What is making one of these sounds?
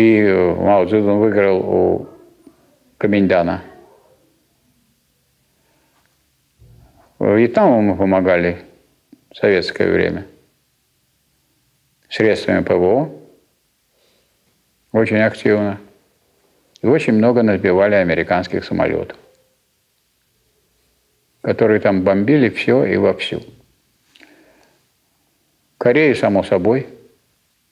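A man speaks calmly in phrases with pauses, in a room with some echo.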